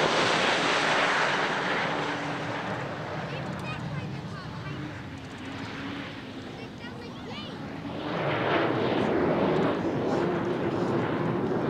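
A powerboat engine roars loudly across the water.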